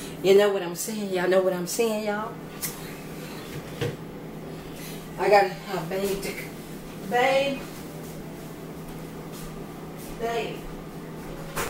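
A middle-aged woman talks animatedly close by.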